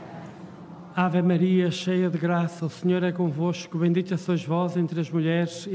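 An elderly man chants loudly through a microphone.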